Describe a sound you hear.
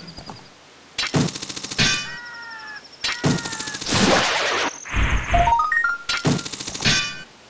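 A hookshot chain rattles as it shoots out and pulls back in a game.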